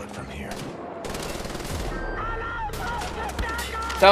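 A mounted machine gun fires rapid shots.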